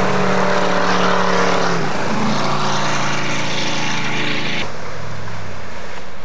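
A motorboat engine roars at high speed.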